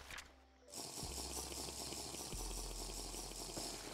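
Water splashes and swishes steadily.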